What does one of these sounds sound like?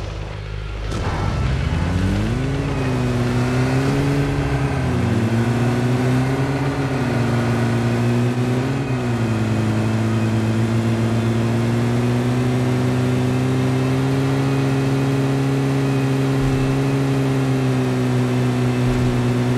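A vehicle engine revs up and drones steadily while driving.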